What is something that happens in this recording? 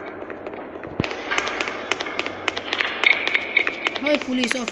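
Footsteps patter quickly.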